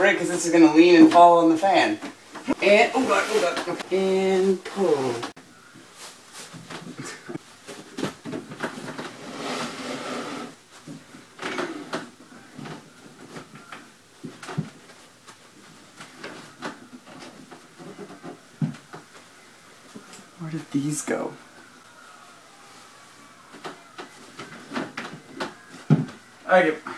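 A wooden door opens and closes.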